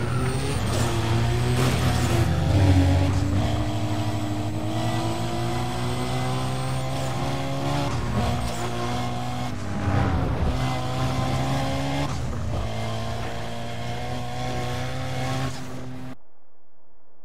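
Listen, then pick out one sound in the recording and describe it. Tyres hiss on the road at speed.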